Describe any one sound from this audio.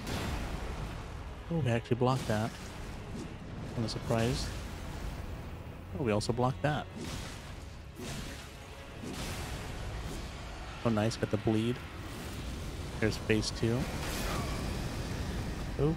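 A huge creature crashes heavily against the ground.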